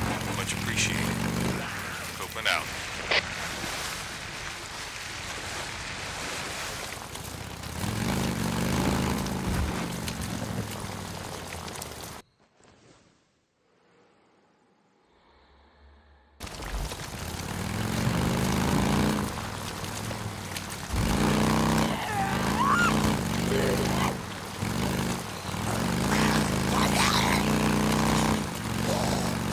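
A motorcycle engine revs and roars as the bike rides over rough ground.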